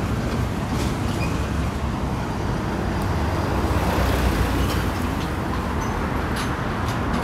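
Traffic rumbles steadily along a nearby road, outdoors.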